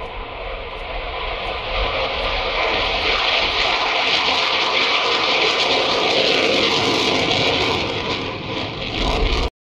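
A jet engine roars loudly as a fighter plane flies past low overhead.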